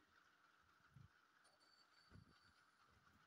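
A small plastic toy taps lightly on a wooden table.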